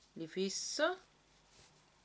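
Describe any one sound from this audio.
A woman speaks briefly and calmly, close to a microphone.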